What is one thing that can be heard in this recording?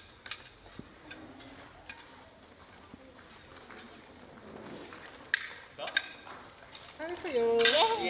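People murmur and chat in the background.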